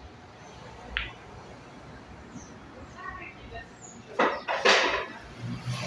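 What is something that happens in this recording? Pool balls knock together with sharp clicks.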